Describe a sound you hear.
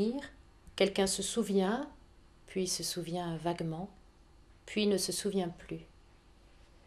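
A woman reads aloud calmly and clearly, close by.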